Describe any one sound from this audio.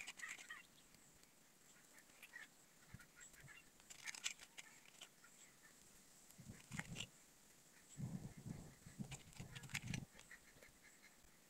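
Metal pliers click and scrape against a small metal fitting.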